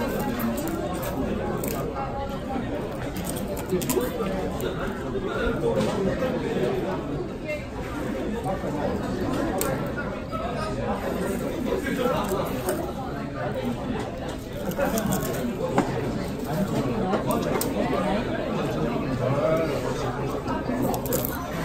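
A busy room murmurs with background chatter.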